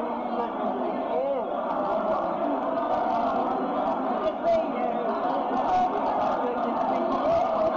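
A crowd of elderly men and women chatter nearby.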